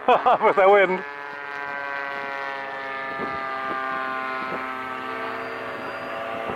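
A small model plane engine buzzes steadily overhead.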